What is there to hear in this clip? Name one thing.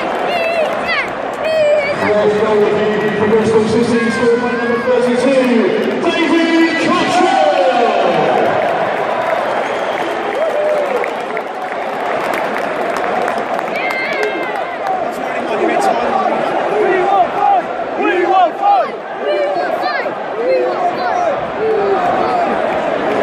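A large stadium crowd sings and chants loudly together.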